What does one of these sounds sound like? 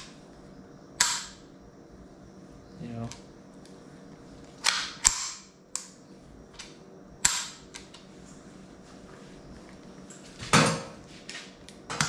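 A man pumps a hand air pump, which hisses in sharp bursts.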